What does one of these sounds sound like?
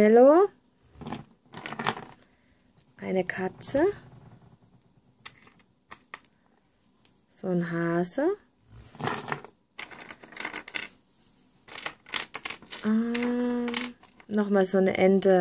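Small hard figures click and clink as they are picked up and put down.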